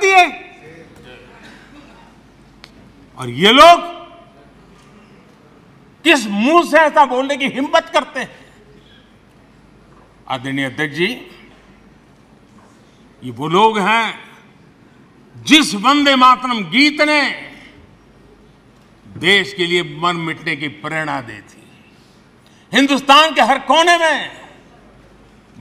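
An elderly man speaks forcefully into a microphone in short bursts, with pauses between them.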